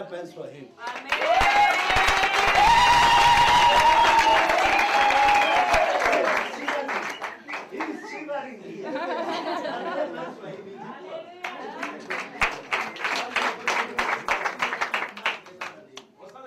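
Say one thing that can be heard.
People clap their hands.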